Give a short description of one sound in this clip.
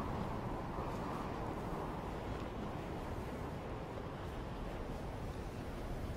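Wind rushes steadily past during a glide down through the air.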